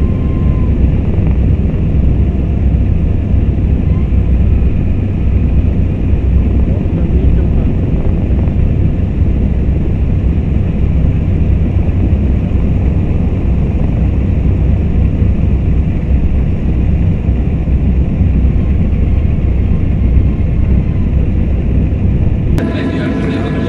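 Aircraft engines drone with a loud, deep rumble from inside the cockpit.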